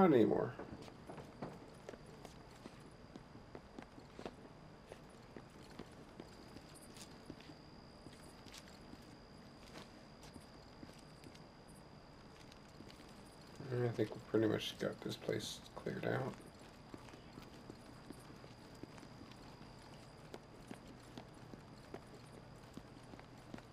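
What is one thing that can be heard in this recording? Footsteps tread softly across a hard floor.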